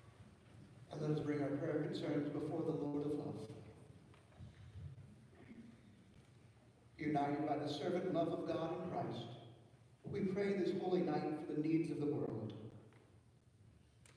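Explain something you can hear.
A congregation sings together in a large echoing hall.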